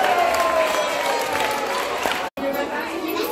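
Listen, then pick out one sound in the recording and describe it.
Children sing together.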